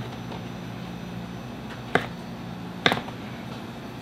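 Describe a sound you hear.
A knife slices through mushrooms on a cutting board with soft taps.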